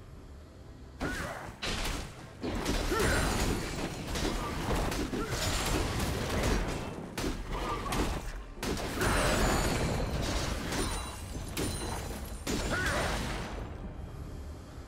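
Video game combat effects clash and burst.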